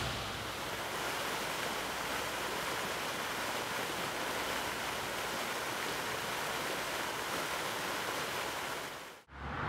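Water from a fountain splashes steadily into a pond.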